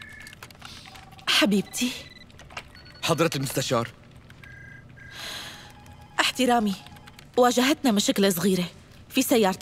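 A young woman speaks urgently into a phone.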